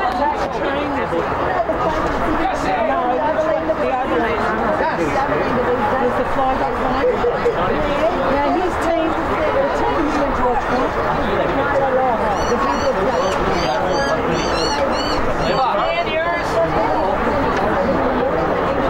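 A crowd of men and women calls out and cheers outdoors.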